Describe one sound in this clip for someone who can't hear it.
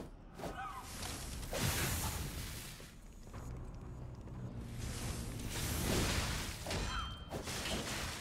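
Metal weapons clash and scrape.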